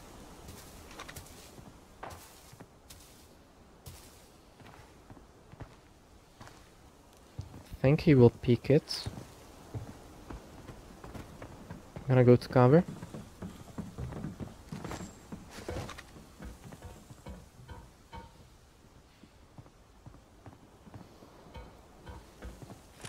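Footsteps tread quickly on the ground.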